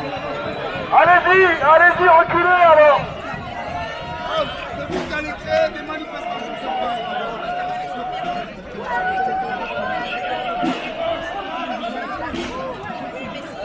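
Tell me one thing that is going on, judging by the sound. An elderly woman shouts loudly and angrily at close range.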